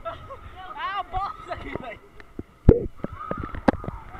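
A young boy laughs close by.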